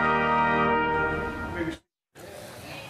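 A trumpet plays a sustained note.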